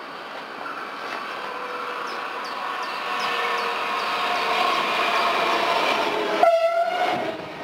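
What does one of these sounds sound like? A train approaches and slows with squealing brakes.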